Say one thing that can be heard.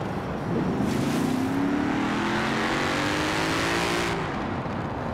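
A sports car engine roars as it speeds up, its pitch climbing through the gears.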